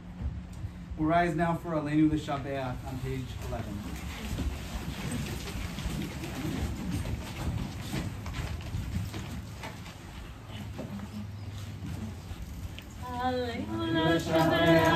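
A small group of people sings together.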